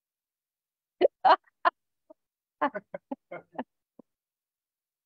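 A man laughs heartily, heard over an online call.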